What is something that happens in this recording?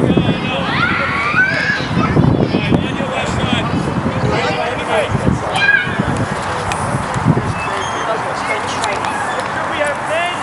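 Young boys call out and shout across an open field.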